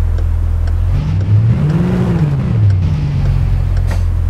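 A car engine revs up and then settles back down.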